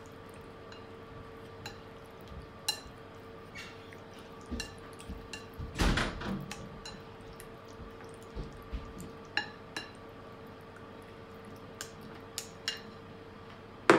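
Chopsticks click and scrape against a plate while mixing meat.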